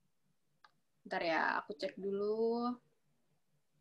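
A young woman speaks briefly and calmly over an online call.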